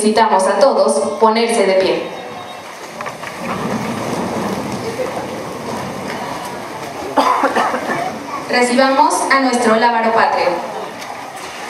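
A woman speaks into a microphone over loudspeakers in a large echoing hall.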